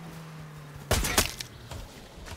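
A single rifle shot cracks.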